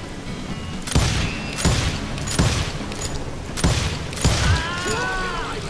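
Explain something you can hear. Revolvers fire several sharp gunshots.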